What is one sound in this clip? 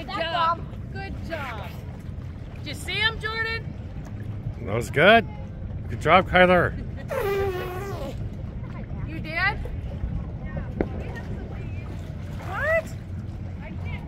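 A woman shouts and squeals excitedly in the water, close by.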